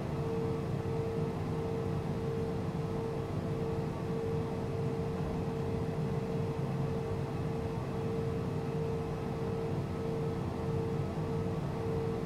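Tyres rumble over a runway.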